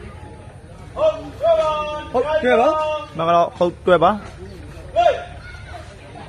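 Men shout loudly and excitedly.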